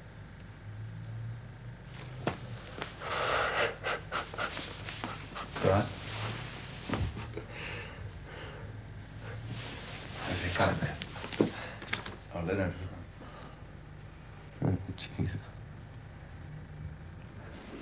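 Paper rustles in a young man's hands.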